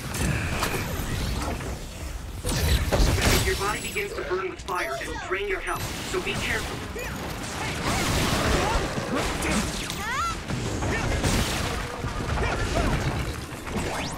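Explosions burst with deep booms.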